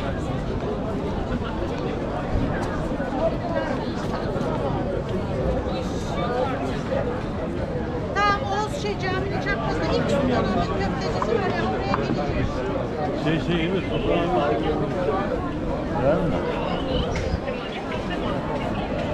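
A crowd of people chatter all around outdoors on a busy street.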